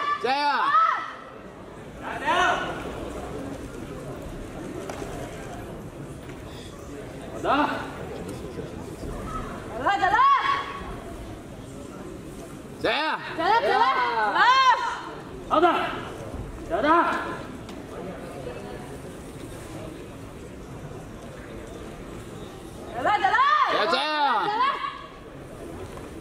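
A young performer lets out sharp shouts in a large echoing hall.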